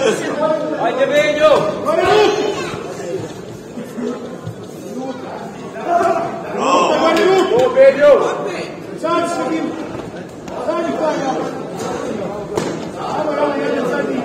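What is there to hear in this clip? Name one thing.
Men in a crowd shout and cheer in a large echoing hall.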